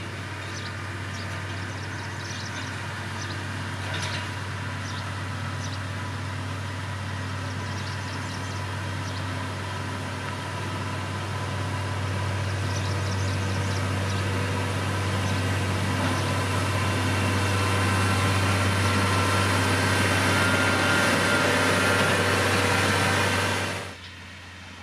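Dirt and gravel scrape under a grader blade.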